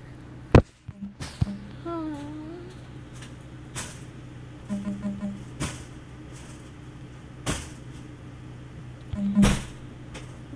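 Short electronic game blips sound now and then.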